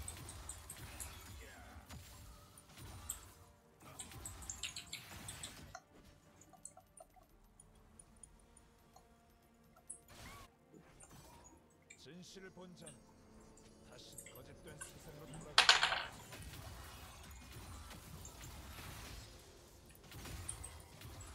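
Game spells whoosh and clash in a fight.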